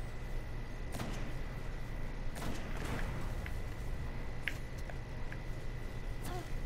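An electric bolt crackles and zaps.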